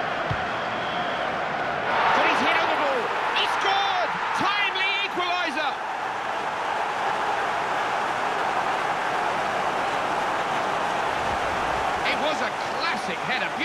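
A large stadium crowd cheers and roars loudly, swelling as a goal is scored.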